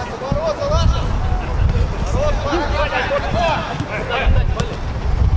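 A football thuds as it is kicked.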